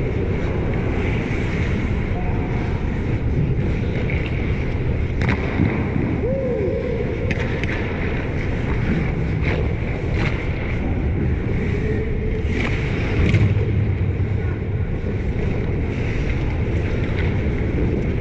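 Skates scrape and hiss on ice in a large echoing arena.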